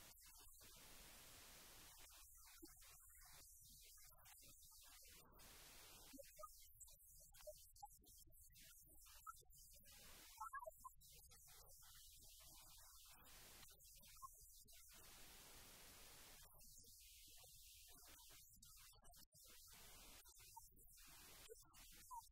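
A middle-aged woman speaks calmly and warmly.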